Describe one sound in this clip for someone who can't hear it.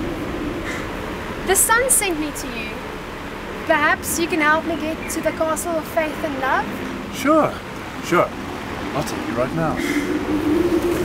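A man speaks with animation outdoors.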